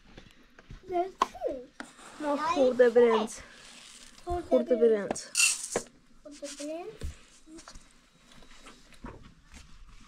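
Grain rustles as it is scooped and poured.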